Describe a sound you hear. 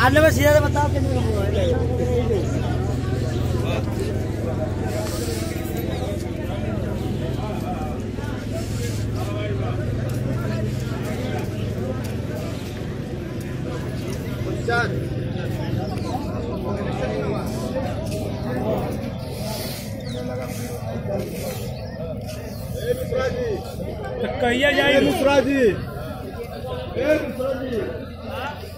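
A crowd murmurs and chatters outdoors in an open space.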